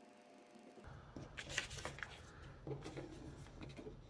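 Paper rustles as a pattern is laid on cloth.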